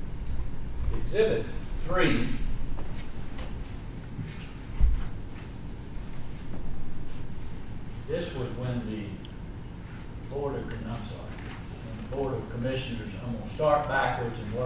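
A man speaks calmly into a microphone in a room with a slight echo.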